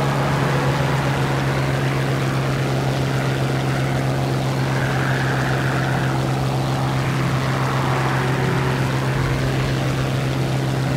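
Wind rushes past a plane in flight.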